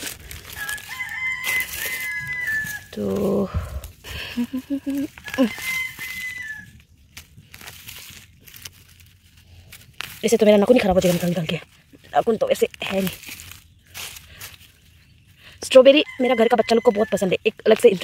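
Dry leaves rustle as a hand brushes through them.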